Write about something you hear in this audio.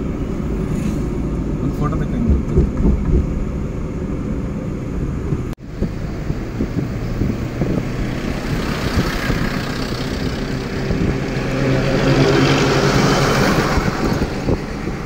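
A vehicle engine hums steadily with road noise while driving.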